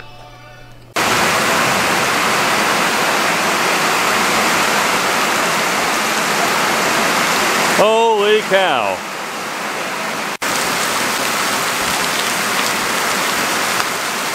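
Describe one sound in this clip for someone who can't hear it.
Heavy rain pours down steadily on water.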